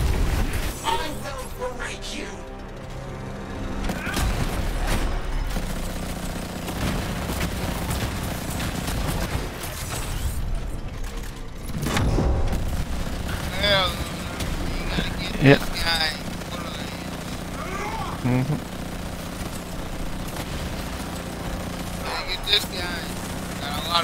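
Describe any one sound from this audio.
Rapid gunfire and blasts ring out with electric crackling.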